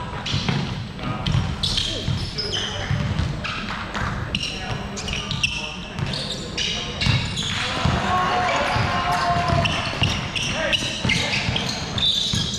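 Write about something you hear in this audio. A basketball bounces with dull thuds on a wooden floor.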